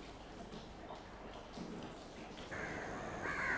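A girl speaks quietly nearby.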